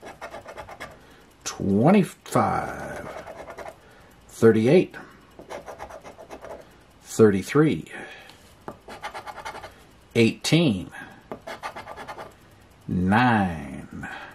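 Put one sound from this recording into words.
A coin scratches the coating off a scratch-off lottery ticket.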